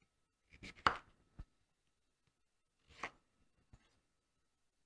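A knife chops through vegetables on a wooden board with sharp knocks.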